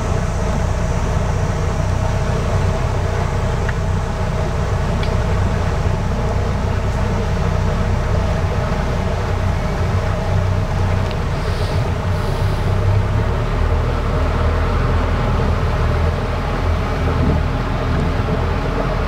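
A boat motor hums steadily close by.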